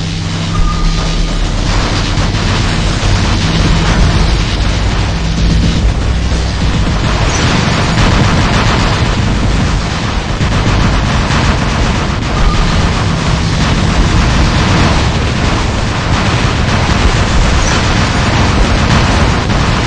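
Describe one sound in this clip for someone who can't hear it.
Giant robot footsteps thud heavily.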